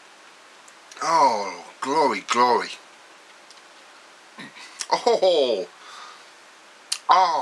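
An older man speaks close to the microphone in short bursts.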